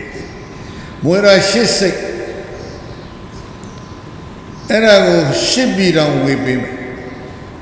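An elderly man speaks slowly and calmly into a microphone, in drawn-out phrases.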